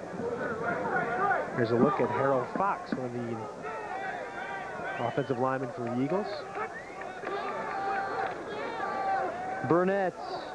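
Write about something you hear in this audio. A large crowd cheers and shouts in an open stadium.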